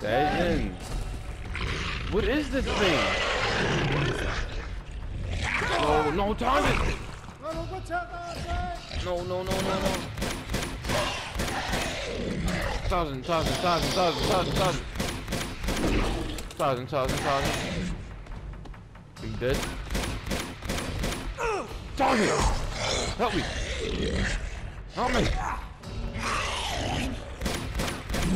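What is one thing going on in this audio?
A beast roars and snarls loudly.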